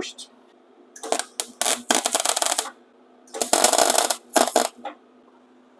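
An electric welding arc crackles and buzzes in short bursts.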